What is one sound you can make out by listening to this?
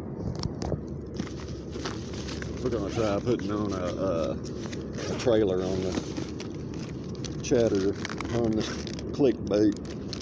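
A fabric bag rustles as hands dig through it.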